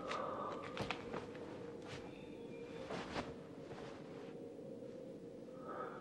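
Cloth rustles as a man handles it.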